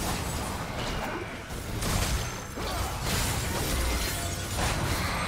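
Magic spells and attacks crackle and blast in quick bursts.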